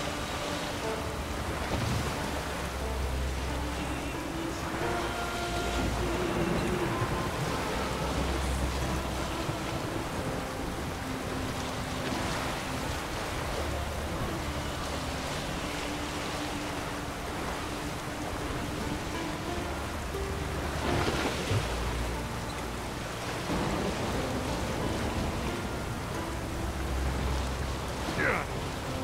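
Waves splash against a small sailing boat's hull.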